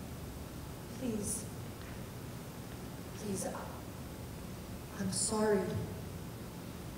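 A young woman speaks quietly in short phrases, heard from a distance in a large hall.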